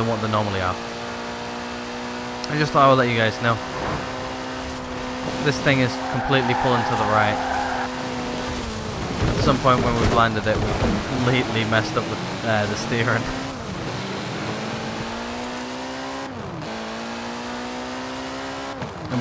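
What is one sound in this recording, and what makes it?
A car engine roars steadily, its pitch rising and falling as it drives.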